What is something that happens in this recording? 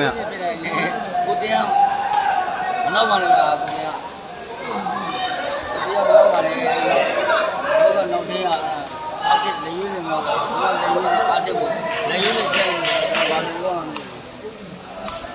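A crowd of spectators chatters and cheers loudly.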